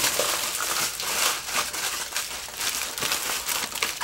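Soil crunches as hands press it down.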